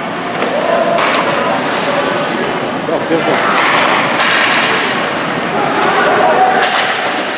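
A puck cracks against a stick.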